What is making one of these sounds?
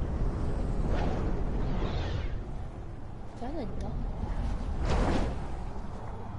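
Sharp whooshes burst out as a video game character shoots through boost rings.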